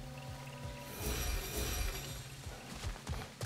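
Thunder cracks loudly and rumbles.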